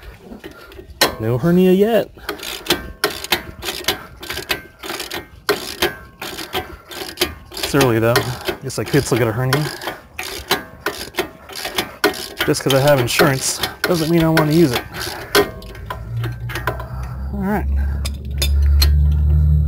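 A ratchet wrench clicks rapidly as a bolt is turned.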